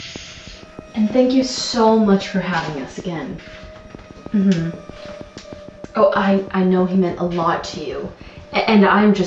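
A young woman talks on a phone with animation, close by.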